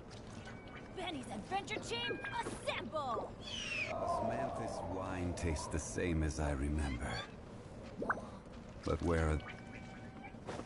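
Game fight effects whoosh and clash.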